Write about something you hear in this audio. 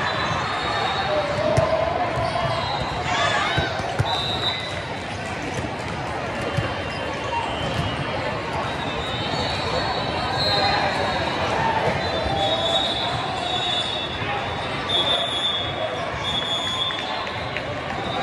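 A large crowd chatters throughout a big echoing hall.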